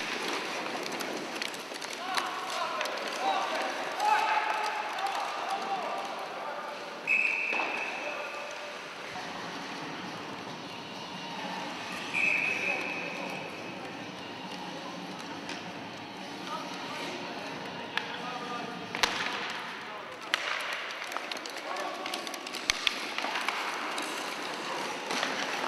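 Sledge blades scrape across the ice.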